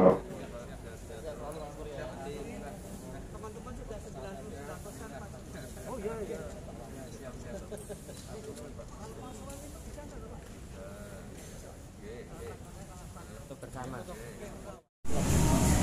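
Men talk quietly among a murmuring crowd nearby.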